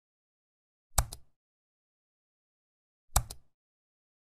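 A mouse button clicks twice.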